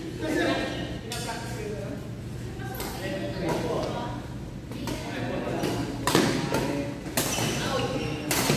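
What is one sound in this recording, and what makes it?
Badminton rackets hit a shuttlecock back and forth in a large echoing hall.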